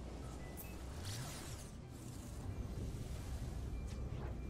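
A spaceship engine roars and surges as it speeds up.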